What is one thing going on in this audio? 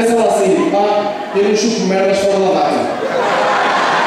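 A young man speaks into a microphone over loudspeakers in a large echoing hall.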